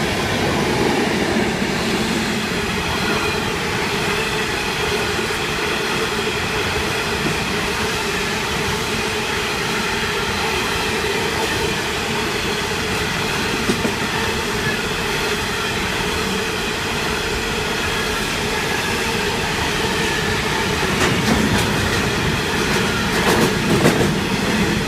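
Train wheels clack and squeal on the rails.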